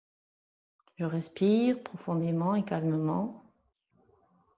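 An older woman speaks calmly and clearly nearby.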